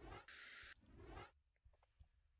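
A game menu whooshes as an item is selected.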